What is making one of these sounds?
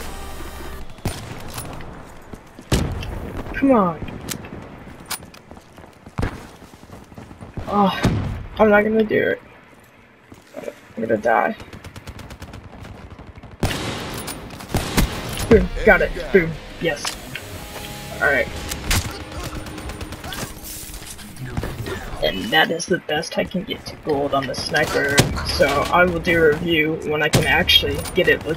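Gunshots crack sharply now and then.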